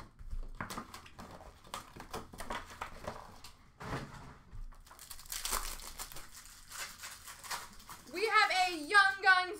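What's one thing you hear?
Card packs tap and clatter against each other.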